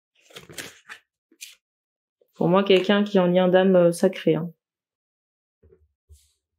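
A stiff card slides and taps against a table.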